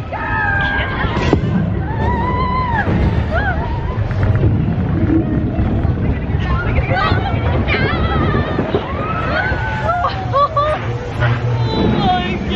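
A woman laughs and talks with animation close by.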